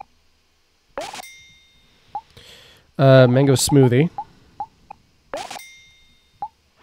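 A cash register chimes in the game.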